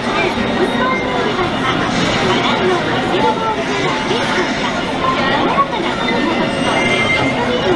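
Video game battle sounds play from a television loudspeaker.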